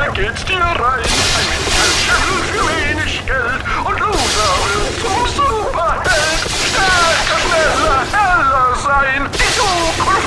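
Electricity crackles and zaps in sharp bursts.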